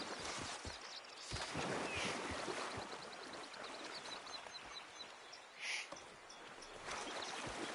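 A man wades through shallow water with splashing steps.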